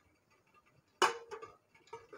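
A metal bowl clinks down onto a steel steamer tray.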